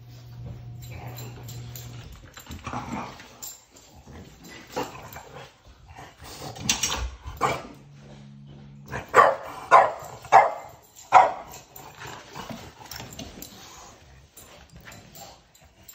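Dogs play and scramble across a rug.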